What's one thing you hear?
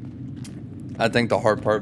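A man talks close into a microphone.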